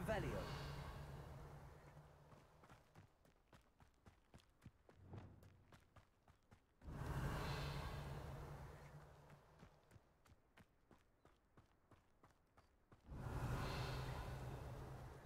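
Footsteps run quickly over grass and gravel.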